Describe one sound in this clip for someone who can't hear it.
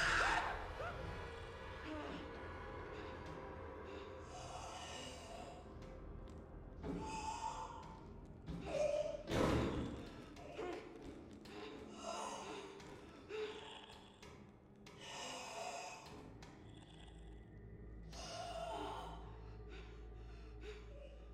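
A man talks into a microphone with animation, close by.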